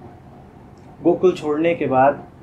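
A man speaks calmly, close to a microphone.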